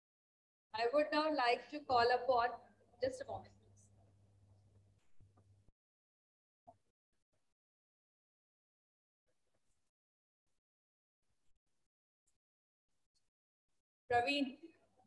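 A woman speaks into a microphone over an online call, with pauses.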